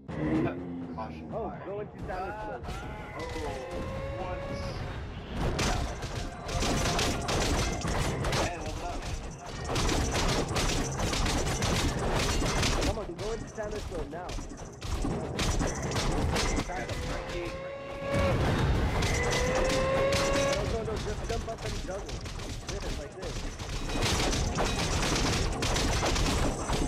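Swords clang and slash in a rapid, noisy game fight.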